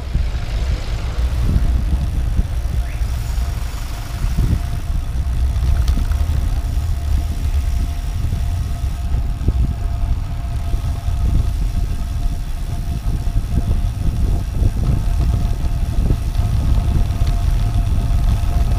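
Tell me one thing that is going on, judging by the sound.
Car engines idle and hum close by in slow traffic.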